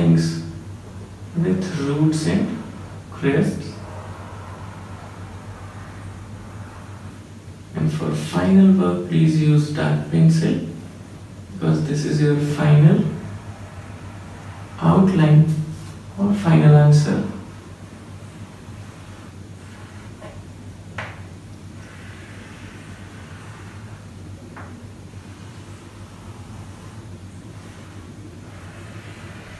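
Chalk scrapes and taps on a board.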